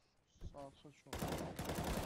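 A rifle fires a quick burst of gunshots.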